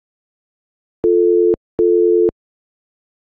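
A phone ringback tone sounds while a call connects.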